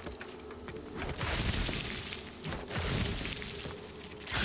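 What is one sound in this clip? Sticky webs tear with a swishing, ripping sound.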